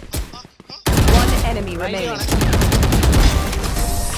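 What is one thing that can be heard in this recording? Rapid gunshots fire from a submachine gun.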